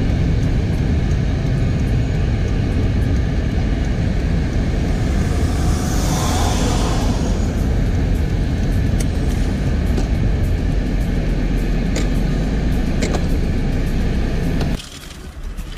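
A car drives along a road with a steady low rumble.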